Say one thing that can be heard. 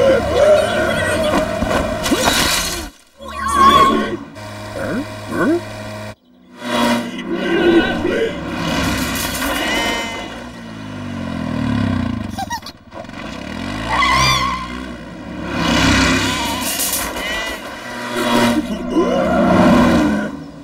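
A car engine drives past.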